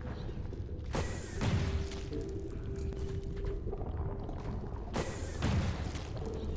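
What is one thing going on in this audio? A blaster fires sharp shots.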